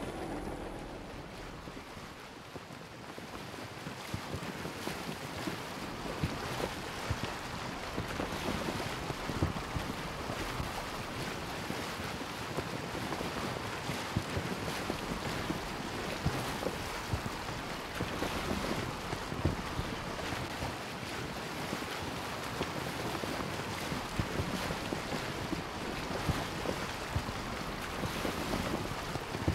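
Water splashes and rushes steadily against the hull of a sailing boat.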